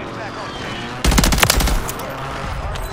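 Rapid gunshots fire in a short burst.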